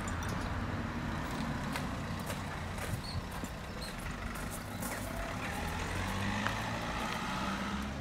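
Footsteps fall on a pavement outdoors.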